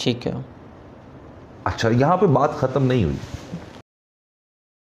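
A man speaks calmly into a microphone nearby.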